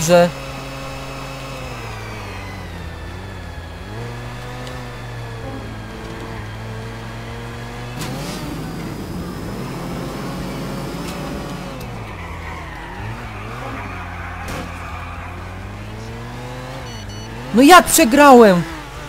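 A car engine hums steadily, its pitch rising and falling as the car speeds up and slows down.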